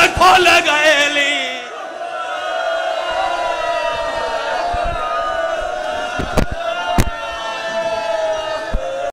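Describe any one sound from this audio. A man chants a lament loudly through a microphone in an echoing hall.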